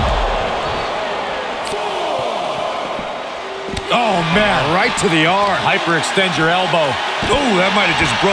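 Heavy blows thud on a body.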